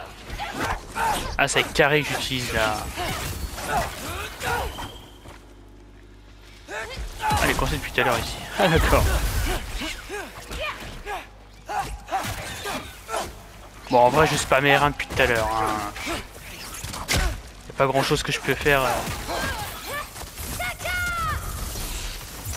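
Blades whoosh and strike in a fight.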